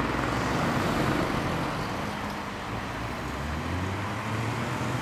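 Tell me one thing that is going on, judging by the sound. Motorcycle engines rumble close by and pull away.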